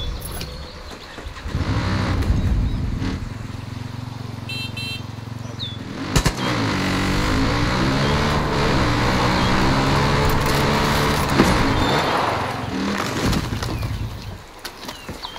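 A quad bike engine revs and drones.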